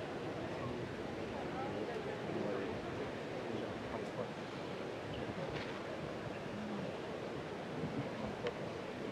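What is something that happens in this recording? A crowd of many people chatters in a large echoing hall.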